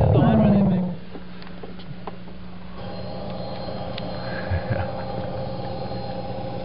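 A loudspeaker hums a steady low tone.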